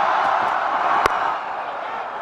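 A bat knocks against a cricket ball.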